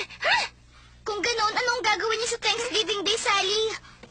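A young girl answers back with irritation.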